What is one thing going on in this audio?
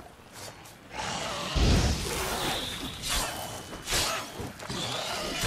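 Blades clash and whoosh in a noisy fight.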